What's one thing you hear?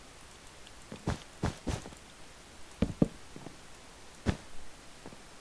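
Blocks are placed with short, soft thuds.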